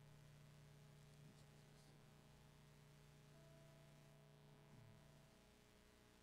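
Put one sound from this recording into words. An electric guitar plays a low sustained note, faint and distant.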